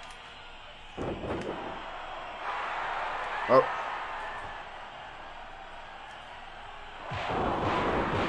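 A heavy thud of a body slamming onto a wrestling ring mat.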